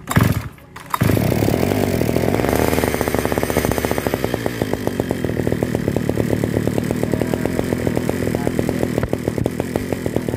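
A small engine coughs into life and runs with a loud, rapid, buzzing putter close by.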